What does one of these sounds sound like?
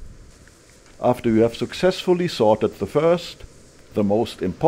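An elderly man talks calmly close by.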